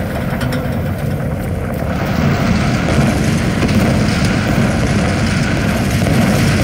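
Water rushes and churns nearby in a steady roar.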